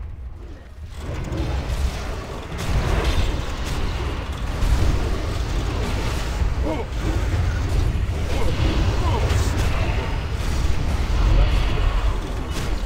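Magic blasts and weapon strikes crash together in a loud, busy fight.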